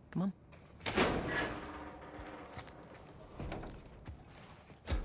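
A metal door swings open.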